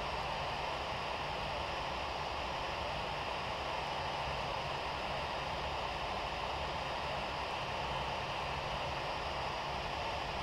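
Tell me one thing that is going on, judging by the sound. A jet airliner's cabin roars steadily in flight.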